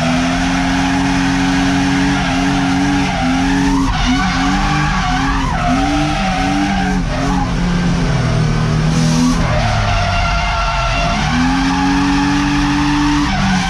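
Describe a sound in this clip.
Tyres squeal as the car slides sideways.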